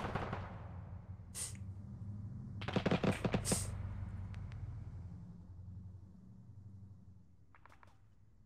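A steam locomotive engine chugs and rumbles steadily.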